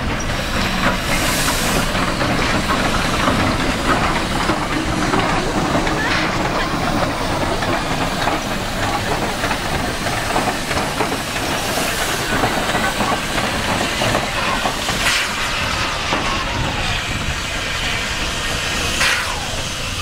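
Steel wheels clank and squeal over the rails.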